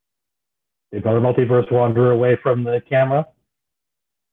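A middle-aged man speaks briefly and calmly through an online call.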